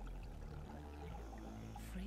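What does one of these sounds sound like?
Air bubbles gurgle from a diver's breathing gear underwater.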